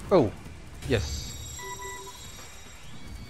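A short game chime rings.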